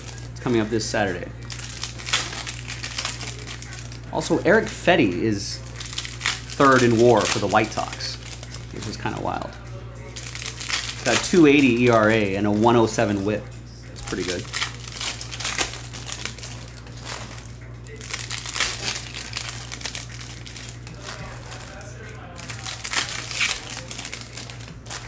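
Foil card wrappers crinkle and rustle as they are torn open.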